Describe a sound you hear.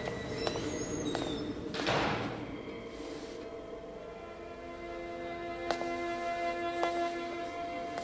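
A young woman gasps.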